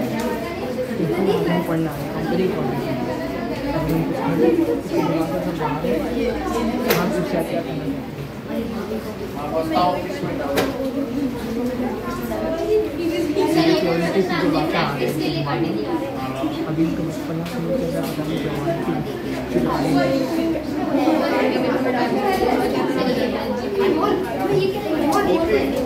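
Many people talk at once all around, a steady babble of voices.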